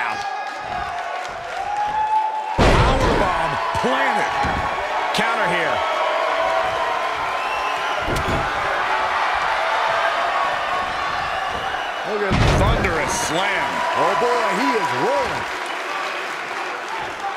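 A crowd cheers and roars steadily in a large arena.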